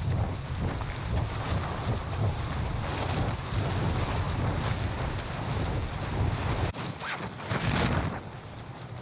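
Wind roars past during a freefall.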